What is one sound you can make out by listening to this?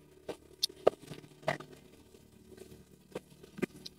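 Scissors snip through raw fish.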